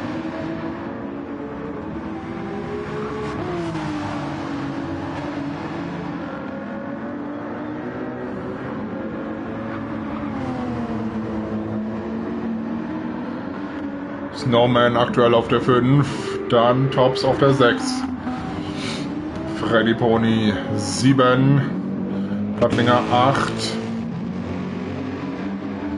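A race car engine roars, rising and falling in pitch as it shifts gears.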